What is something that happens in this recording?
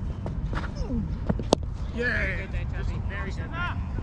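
A cricket ball cracks off a bat.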